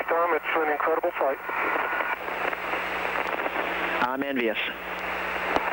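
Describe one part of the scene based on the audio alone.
A man speaks briefly over a crackly, hissing radio link.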